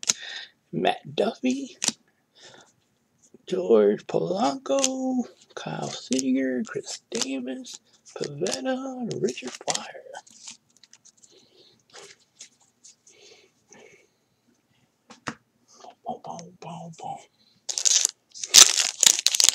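Trading cards slide and rustle between fingers.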